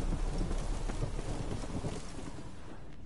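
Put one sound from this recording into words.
Footsteps run through grass and undergrowth.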